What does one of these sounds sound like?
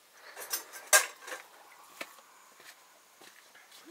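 A metal bowl clinks.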